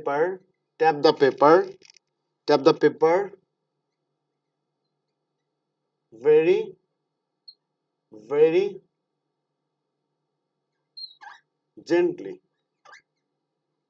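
A man speaks calmly and clearly into a close microphone, pausing between phrases.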